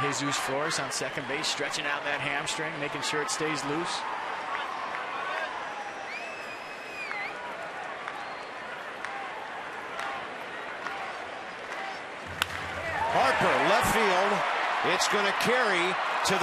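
A large stadium crowd murmurs.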